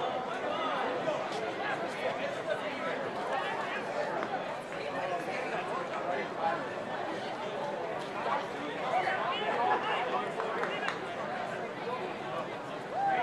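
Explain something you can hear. Men shout to each other on an open field.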